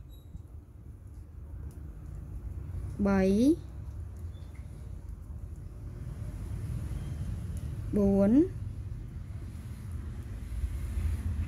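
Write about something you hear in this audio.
A crochet hook softly rustles through thread.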